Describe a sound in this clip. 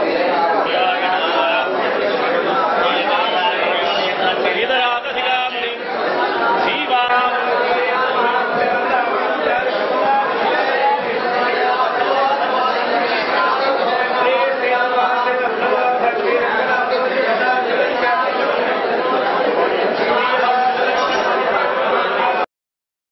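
A crowd of men chants together loudly in an echoing hall.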